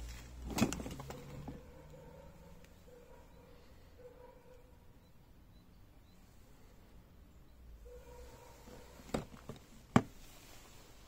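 A cardboard box rustles and knocks as it is handled close by.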